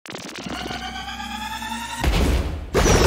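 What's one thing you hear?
A rising electric zapping sound builds up.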